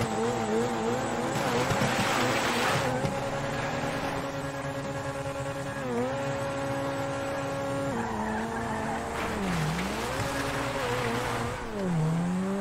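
A sports car engine idles and revs loudly.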